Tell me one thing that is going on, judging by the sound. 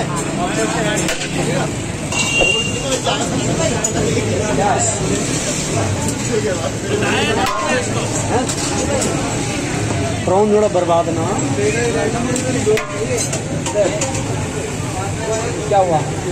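Men talk nearby in a busy, noisy crowd.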